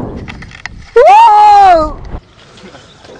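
A young man yells loudly.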